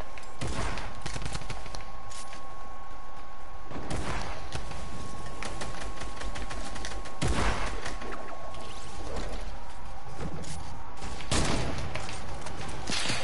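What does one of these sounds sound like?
Wooden panels snap into place in quick bursts.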